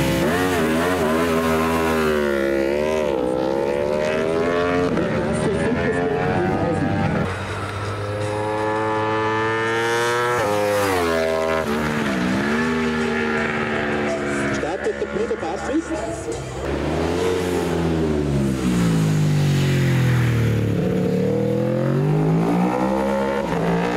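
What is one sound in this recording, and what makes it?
A racing motorcycle roars past, shifting gears as it speeds up and slows.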